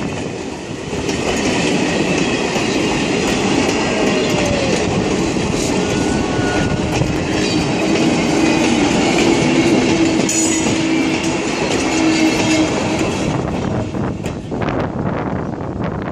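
Train carriages roll past close by with a loud rumble.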